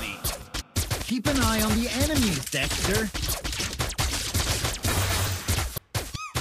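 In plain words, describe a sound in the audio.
Video game combat effects burst and clash.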